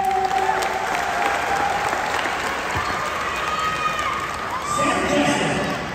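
Sneakers squeak on a polished floor in a large echoing hall.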